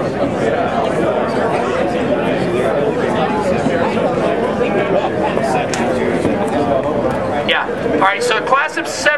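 A crowd of men chatters outdoors nearby.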